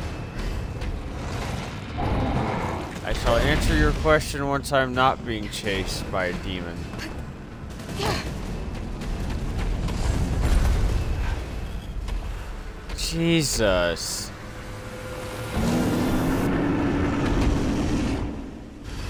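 A huge creature roars loudly and growls.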